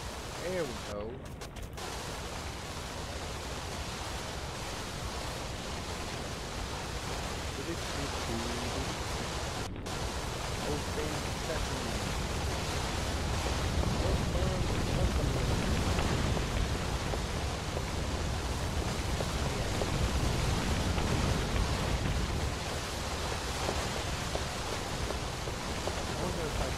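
Water sprays in a steady hiss from a fire hose.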